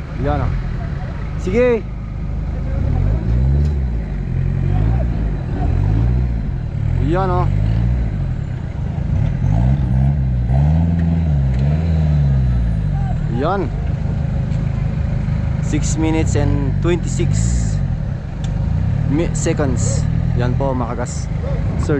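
A vehicle's engine revs hard, rising and falling repeatedly.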